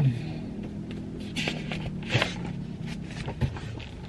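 Paper pages rustle as a book is leafed through.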